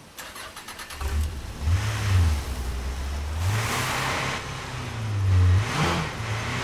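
A car engine starts and revs as a vehicle drives off.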